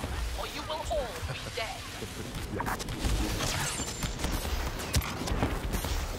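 Laser blasters fire in sharp bursts.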